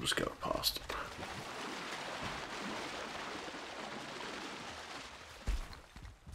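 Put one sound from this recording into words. Water splashes and churns steadily as a swimmer moves through it.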